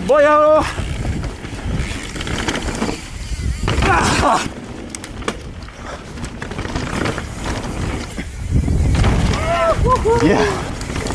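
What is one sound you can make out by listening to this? Bicycle tyres rumble and crunch over a bumpy dirt trail.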